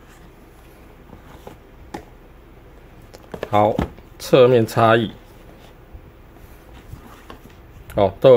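Cardboard boxes rub and tap softly against each other.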